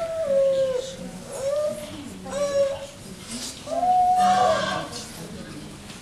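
A woman calls out loudly in a sing-song voice in an echoing hall.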